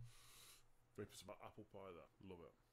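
A man speaks animatedly into a close microphone.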